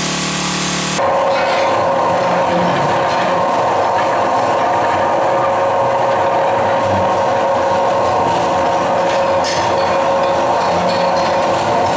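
A mechanical scraper drags over loose rock with a steady machine roar.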